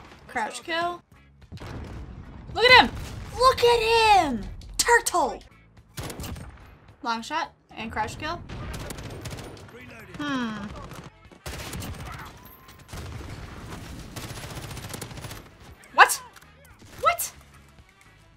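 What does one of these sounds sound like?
A young woman talks with animation close to a headset microphone.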